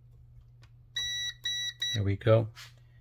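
A multimeter beeps steadily.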